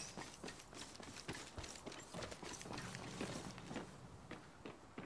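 Quick footsteps run across a hard floor.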